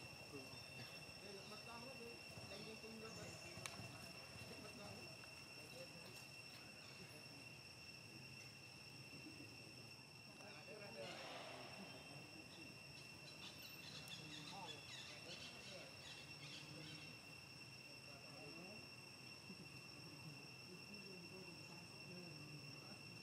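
Young monkeys squeal and chatter close by.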